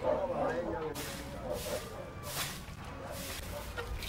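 A broom sweeps across a dirt floor in quick strokes.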